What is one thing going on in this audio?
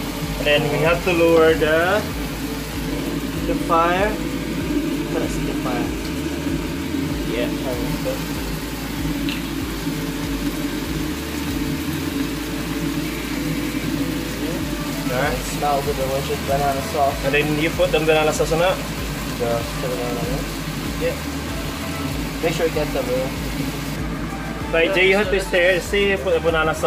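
Prawns sizzle in a hot pan.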